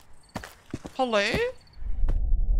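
A woman exclaims loudly into a close microphone in a high, sing-song voice.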